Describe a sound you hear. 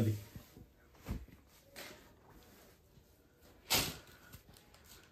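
Fabric rustles as it is unfolded and laid flat.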